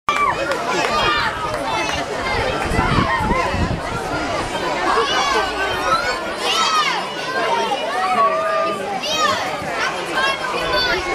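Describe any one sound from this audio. A young girl sings into a microphone over loudspeakers.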